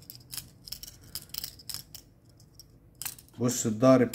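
Metal knives clink and click together.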